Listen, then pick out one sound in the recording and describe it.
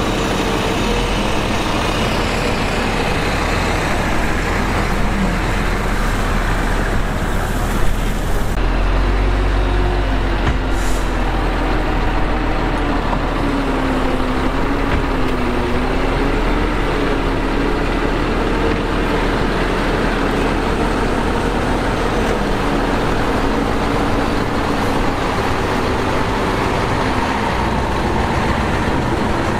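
A bulldozer engine rumbles steadily, its pitch rising and falling as it works.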